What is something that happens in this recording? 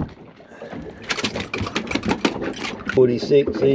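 A caught fish flaps and slaps against a hard deck.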